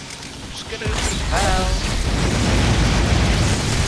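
A flamethrower roars with a rushing blast of fire.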